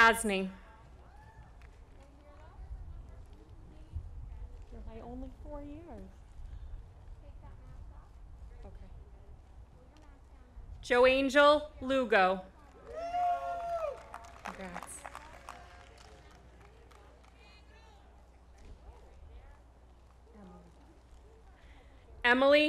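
A woman reads out names over a loudspeaker, echoing outdoors.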